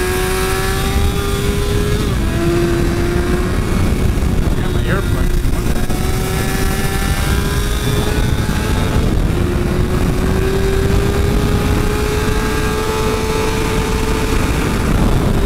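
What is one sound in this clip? A motorcycle engine whines at high revs, shifting gears and rising in pitch.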